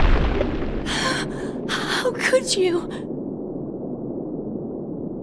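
A young woman speaks in a pleading, upset voice.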